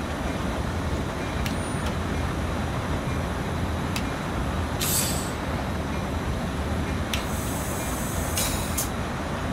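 A train rumbles steadily along the rails through a tunnel.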